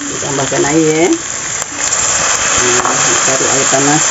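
Water pours into a sizzling pan.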